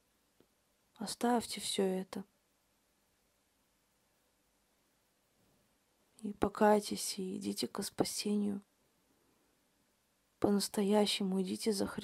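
A woman speaks calmly and clearly into a nearby microphone, in short phrases with pauses.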